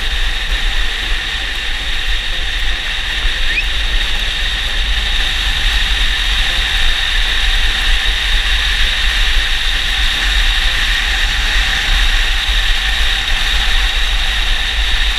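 Skateboard wheels rumble steadily on rough asphalt.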